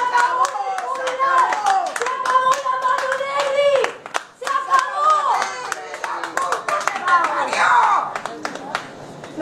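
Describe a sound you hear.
A crowd of women claps along in a quick rhythm.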